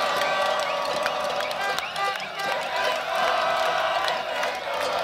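A large crowd cheers and whistles loudly.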